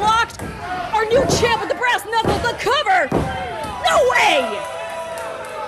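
A crowd shouts and cheers nearby.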